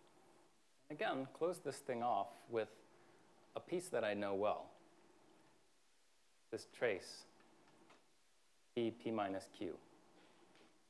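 A man lectures calmly in a room with a slight echo.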